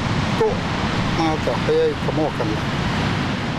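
A man speaks briefly nearby in a lively voice.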